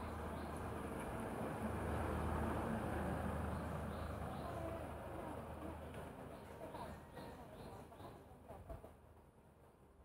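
Wind rustles through leafy trees outdoors.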